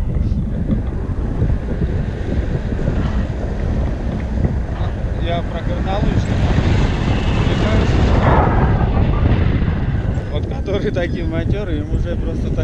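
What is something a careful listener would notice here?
Strong wind buffets the microphone throughout.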